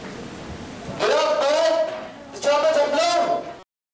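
A children's choir sings loudly in an echoing hall.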